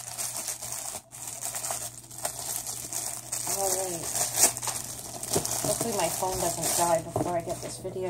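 Plastic wrapping crinkles and rustles as hands unwrap a package.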